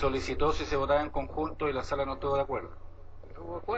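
An elderly man speaks into a microphone in a large echoing hall.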